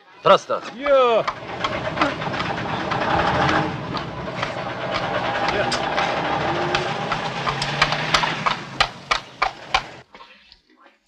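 Carriage wheels rattle over cobblestones.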